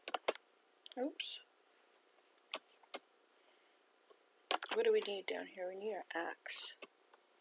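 An elderly woman speaks calmly.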